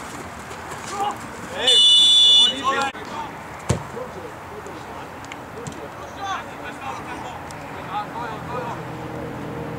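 Footballers shout to each other across an open field.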